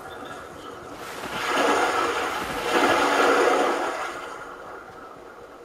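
Water splashes loudly as someone wades through a river.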